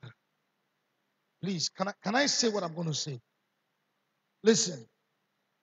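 A man preaches with animation into a microphone, heard through a loudspeaker.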